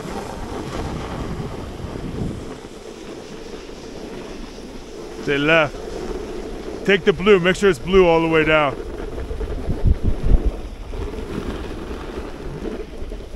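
A snowboard scrapes and hisses over packed snow.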